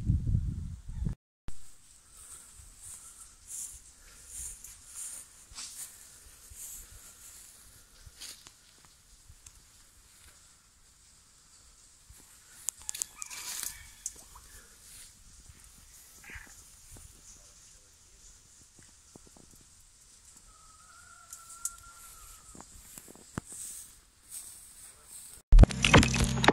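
Burning undergrowth crackles faintly outdoors.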